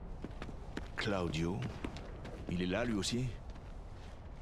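An older man speaks in a low, steady voice.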